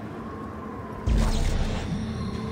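A blast bursts with a deep boom.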